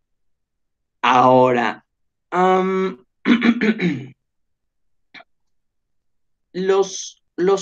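A man speaks calmly into a microphone, heard as in an online call.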